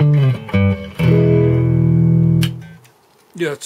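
An electric guitar rings out with a loud chord that cuts off.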